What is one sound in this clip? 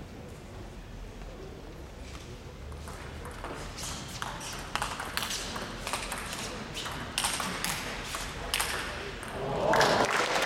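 A table tennis ball clicks back and forth on paddles and the table in a quick rally.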